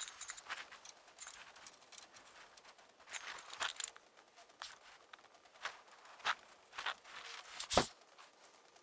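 Metal parts clink and knock against a steel tube.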